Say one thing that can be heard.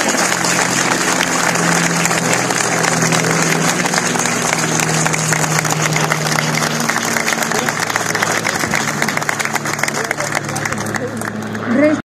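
A crowd applauds steadily, close by.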